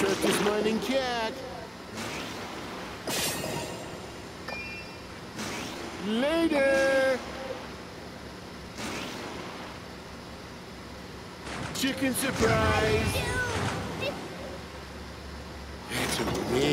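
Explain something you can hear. A racing kart speeds along with loud whooshing bursts.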